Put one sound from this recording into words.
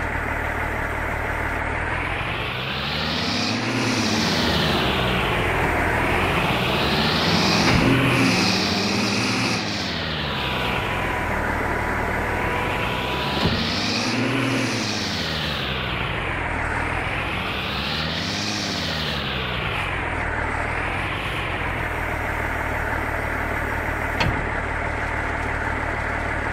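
A loader's diesel engine revs up and down repeatedly.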